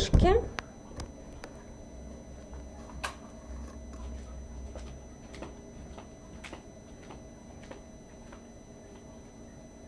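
Footsteps tap on the floor and move away.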